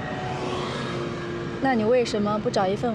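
A young woman speaks briefly close by.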